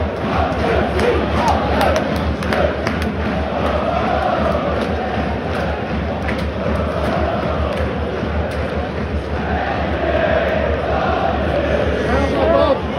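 A large stadium crowd sings and chants loudly outdoors.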